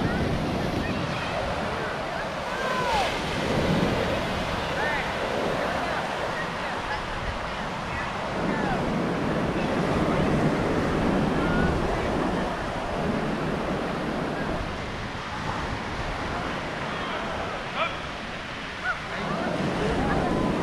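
Wind blows across the open beach.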